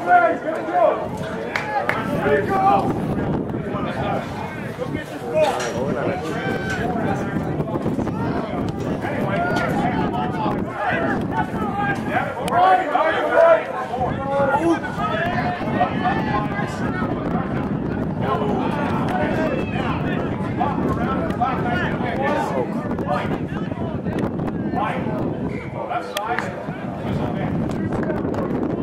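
A crowd of spectators chatters and calls out close by, outdoors.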